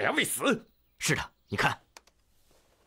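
A younger man answers briefly.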